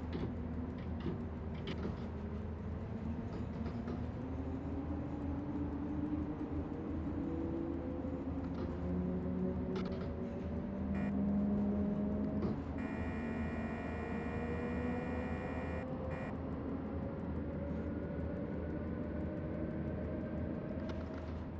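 An electric locomotive motor hums and whines, rising steadily in pitch as the train speeds up.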